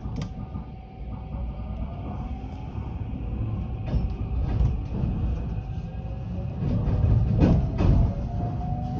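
A train's motor whines, rising in pitch.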